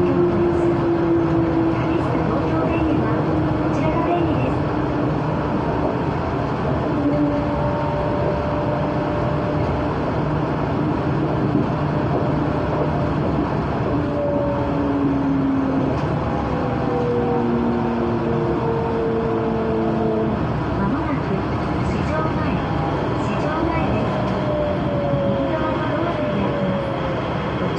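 A train rumbles steadily along a track at speed.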